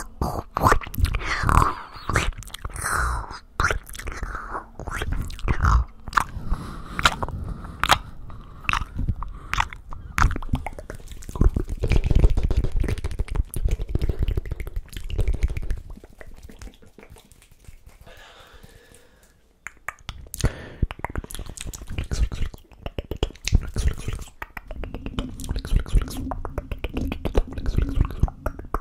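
Hands rub and tap close against a microphone.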